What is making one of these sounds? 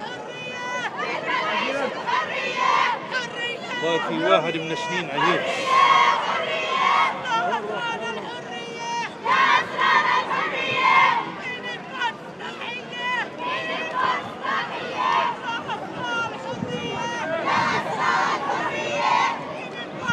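A crowd of men and women chants and shouts loudly outdoors.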